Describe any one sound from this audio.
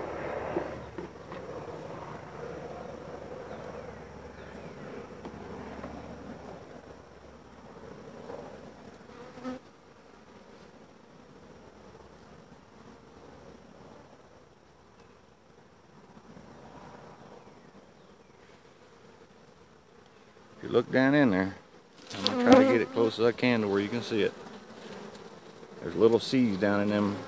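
Bees buzz steadily around an open hive.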